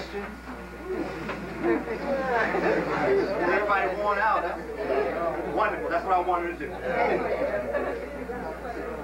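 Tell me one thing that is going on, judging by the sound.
A middle-aged man speaks with animation to a group.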